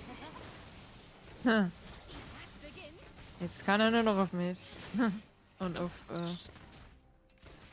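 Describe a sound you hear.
Magic blasts zap and crackle in a fight.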